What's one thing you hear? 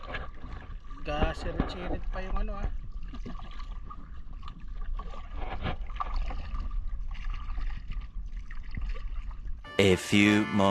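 A wooden paddle dips and splashes in water.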